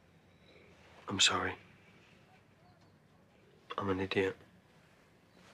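A man speaks quietly and apologetically.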